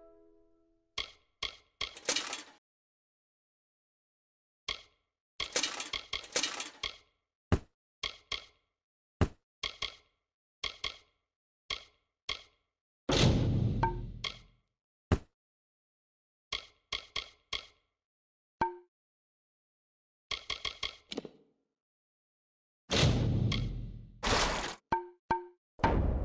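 Soft menu clicks and ticks sound in quick bursts as game items are scrolled through.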